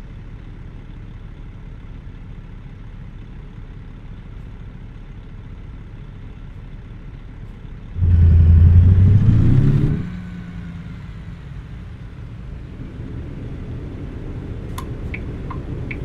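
A truck engine idles with a low steady rumble.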